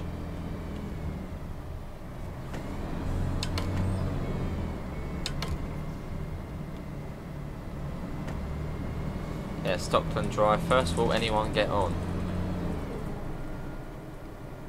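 A bus engine hums steadily and rises and falls as the bus drives.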